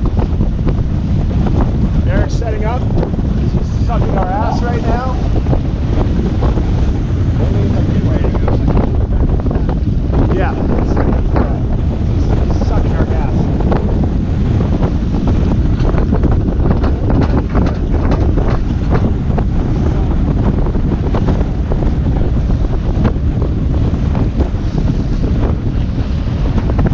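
Water rushes and splashes against the hull of a moving sailboat.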